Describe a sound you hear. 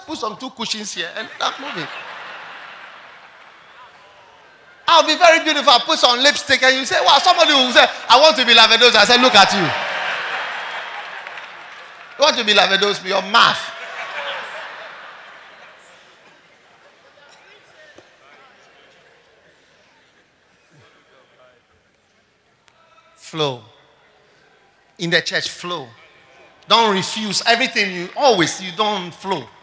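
A man preaches loudly and with animation through a microphone, his voice echoing through a large hall.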